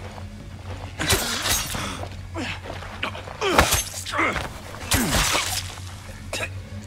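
Bodies thud and scuffle in a brief struggle.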